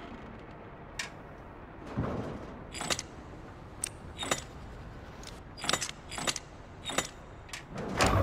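Stone dials click as they turn into place.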